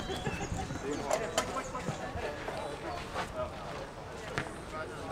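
A crowd of spectators chatters quietly in the distance outdoors.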